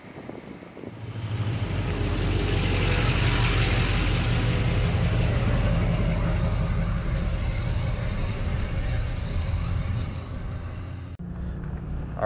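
Tyres roll over rough pavement.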